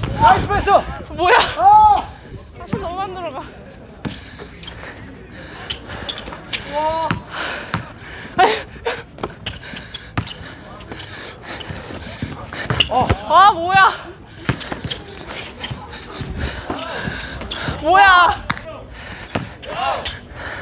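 Young women shriek and shout excitedly outdoors.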